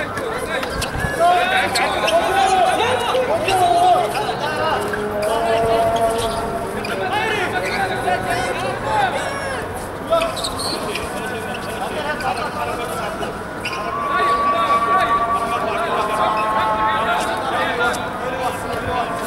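Young players shout and call out to each other across an open outdoor court.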